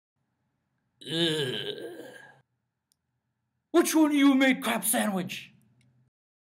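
A young man speaks with animation close by, in bursts with pauses.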